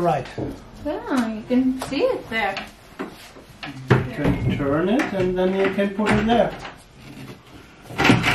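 A wooden cabinet door knocks and rattles.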